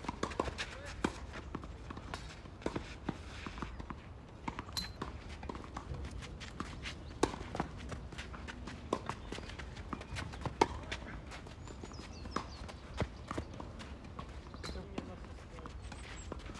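Tennis shoes scuff and slide on a clay court.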